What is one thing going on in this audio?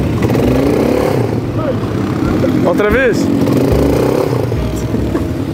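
A quad bike engine revs loudly up close.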